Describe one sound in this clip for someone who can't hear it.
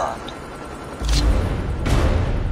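A short, low musical sting plays at the end.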